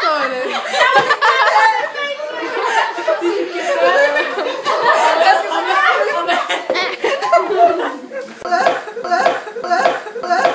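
Young women laugh loudly and talk excitedly close by.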